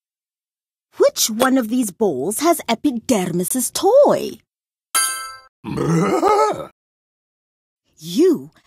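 A cartoon creature speaks in a playful, animated voice.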